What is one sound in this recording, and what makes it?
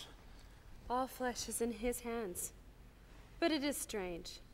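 A young woman speaks softly in reply.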